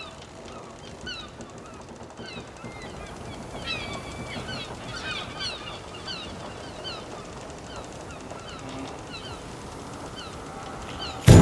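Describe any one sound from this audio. Waves wash up onto a sandy shore.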